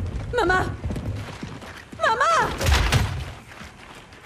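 A man shouts out loudly, calling for someone.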